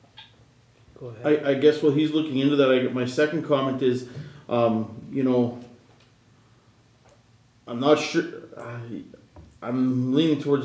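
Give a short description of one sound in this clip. A man speaks calmly through a microphone in a room with some echo.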